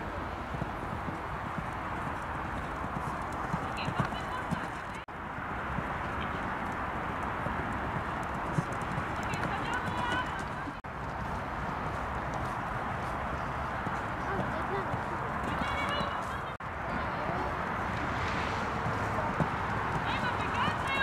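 A horse trots over sand.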